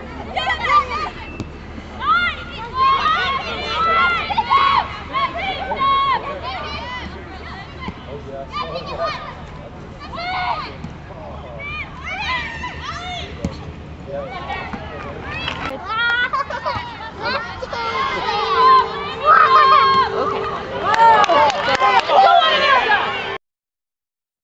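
Young women shout and call out to each other outdoors.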